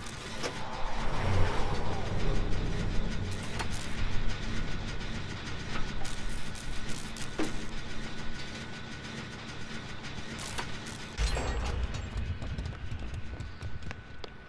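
A machine rattles and clanks.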